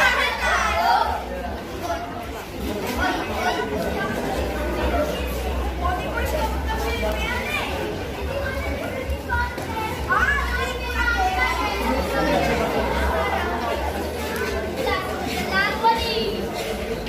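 Children cheer and call out loudly from the crowd.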